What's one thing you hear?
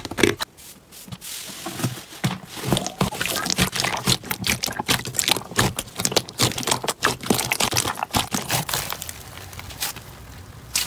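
Hands knead soft slime with squelching sounds.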